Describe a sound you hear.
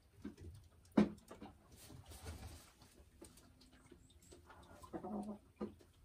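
A hen clucks softly close by.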